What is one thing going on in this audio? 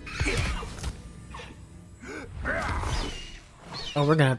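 Magic spells crackle and burst.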